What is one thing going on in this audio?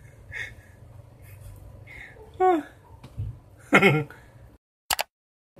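A man laughs and exclaims with animation close to a microphone.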